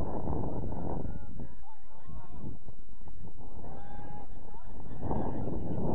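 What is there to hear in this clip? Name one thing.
Men call out to each other from afar on an open field.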